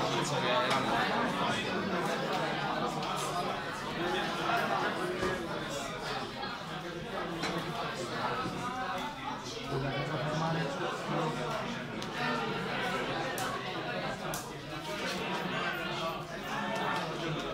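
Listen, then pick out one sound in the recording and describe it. Playing cards slide and tap on a mat.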